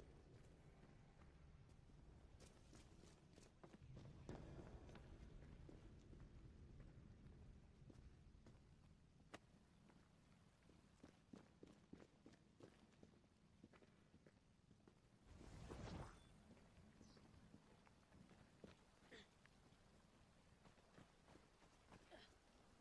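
Footsteps tread on stone, with a soft echo.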